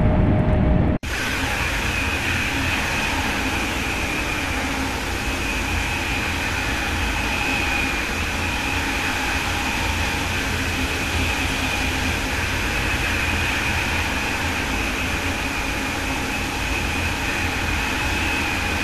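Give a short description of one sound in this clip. A high-speed electric train rushes along the track at speed, with a steady whine.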